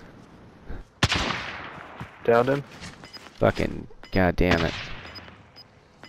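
A rifle fires sharp shots that echo away.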